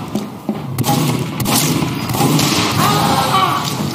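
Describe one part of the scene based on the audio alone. Pistol shots ring out in a video game.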